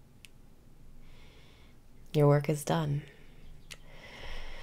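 A young woman speaks softly and whispers close to a microphone.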